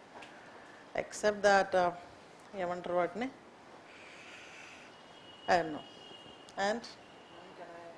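A woman speaks calmly and clearly into a clip-on microphone.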